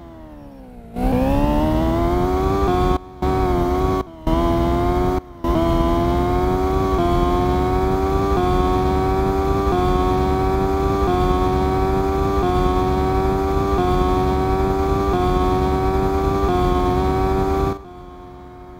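A racing car engine revs up and whines steadily at high pitch, cutting out briefly a few times.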